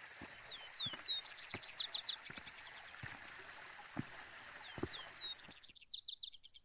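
Boots crunch and trekking poles tap on rocky ground.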